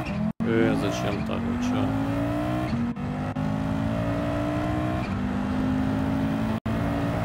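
A racing car engine revs up repeatedly, its pitch climbing and dropping at each gear change.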